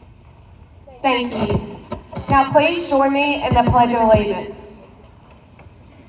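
A young woman speaks into a microphone over loudspeakers outdoors, her voice carrying with a slight echo.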